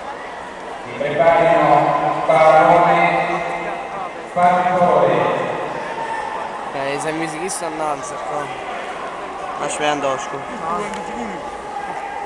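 Men close by shout and cheer loudly.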